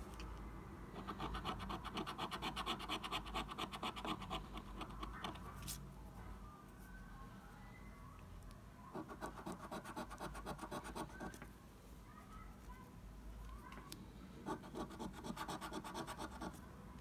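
A coin scrapes rapidly back and forth across a scratch card.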